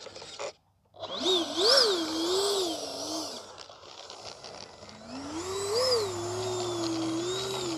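A small jet engine whines, rising and falling in pitch.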